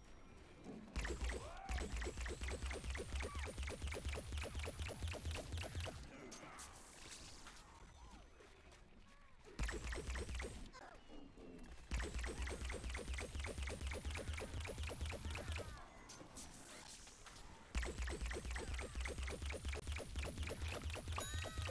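A rapid-fire game weapon shoots in fast bursts.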